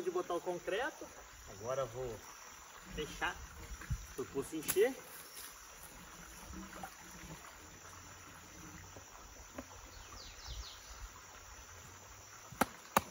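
Water sloshes and splashes around a man wading.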